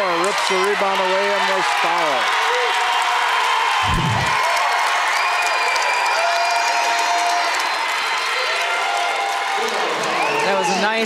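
A large crowd cheers and shouts in an echoing gym.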